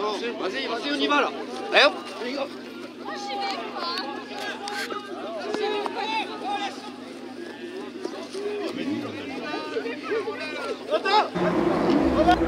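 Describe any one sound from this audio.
Men shout outdoors.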